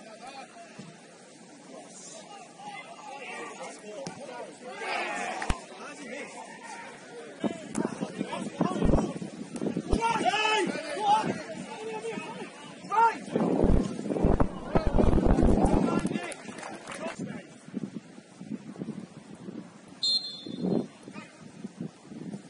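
Men shout to each other across an open pitch outdoors.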